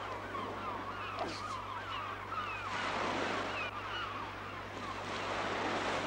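Birds call.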